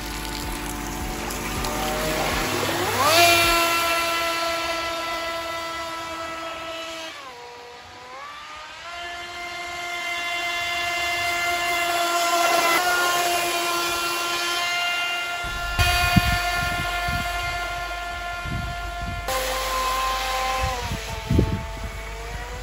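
A small motor whines at a high pitch, rising and falling in speed.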